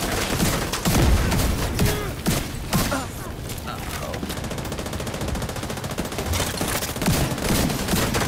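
A fire burst roars.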